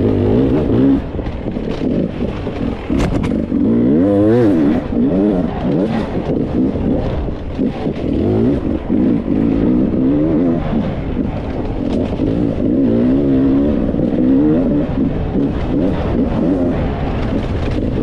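Tyres crunch and rattle over rocky dirt.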